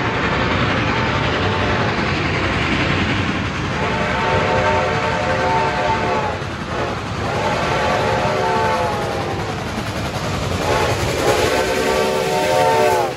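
A steam locomotive chuffs loudly as it approaches and passes close by.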